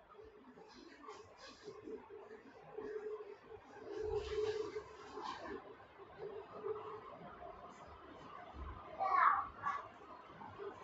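Fingers rustle softly through hair, close by.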